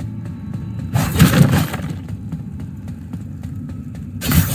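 A sword swishes through the air with sharp slashing hits.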